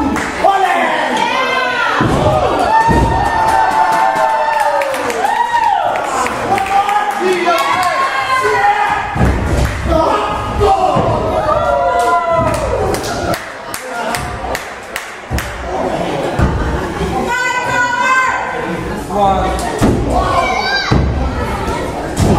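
Wrestlers thud heavily onto a ring mat.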